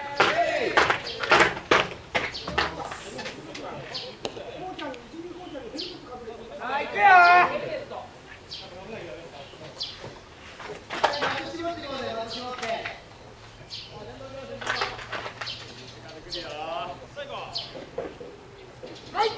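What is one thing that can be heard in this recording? Young men shout and call out across an open field, heard from a distance.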